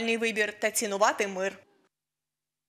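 An elderly woman calls out cheerfully.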